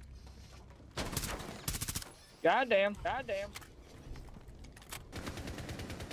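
Gunshots ring out in a video game.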